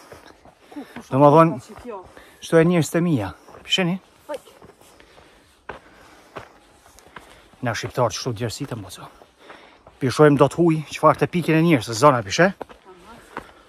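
A man talks calmly and close up.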